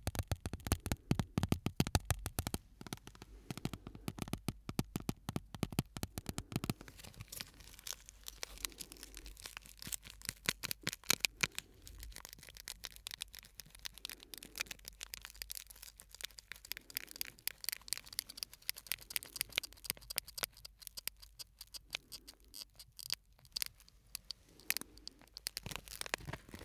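Fingers crinkle and tap crisp plastic close to a microphone.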